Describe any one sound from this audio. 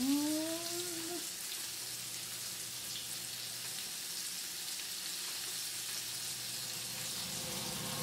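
Chopsticks tap against a frying pan.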